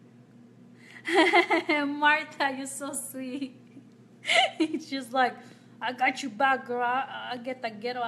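A young woman speaks cheerfully, close to the microphone.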